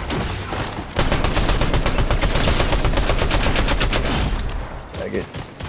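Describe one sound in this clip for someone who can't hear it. Rapid automatic gunfire rattles close by.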